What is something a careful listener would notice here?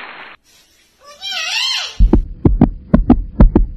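A middle-aged woman speaks loudly and with animation.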